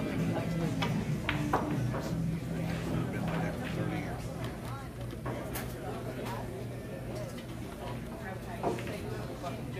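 Pool balls clack together sharply.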